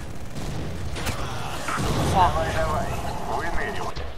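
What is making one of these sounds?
A pistol fires a shot.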